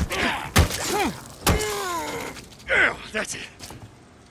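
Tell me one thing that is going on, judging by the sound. A creature shrieks and snarls.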